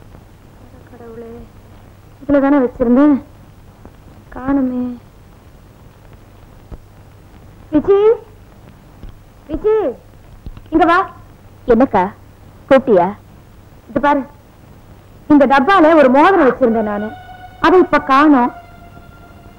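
A young woman speaks calmly, in short phrases.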